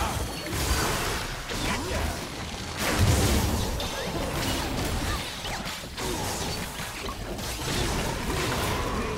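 Spell blasts and hits crackle and boom in a fast game fight.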